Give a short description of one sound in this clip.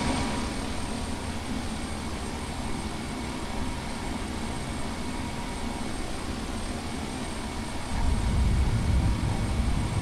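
An aircraft engine drones steadily, growing louder near the end.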